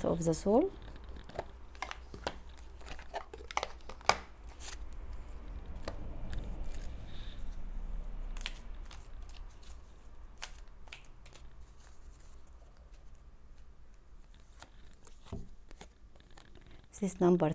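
Cards click and shuffle in someone's hands.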